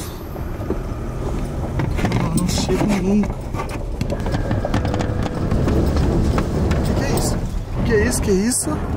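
Tyres crunch and bump over an uneven dirt track.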